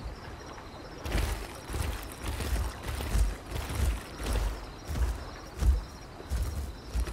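A creature's heavy footsteps thud on the ground.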